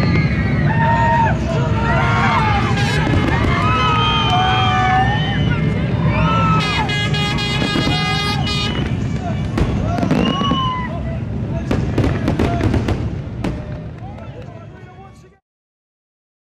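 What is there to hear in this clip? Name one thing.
A crowd cheers and whoops loudly outdoors.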